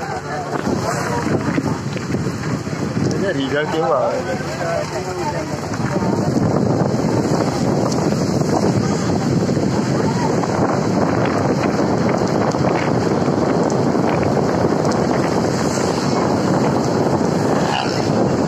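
Tyres hiss loudly on a wet road.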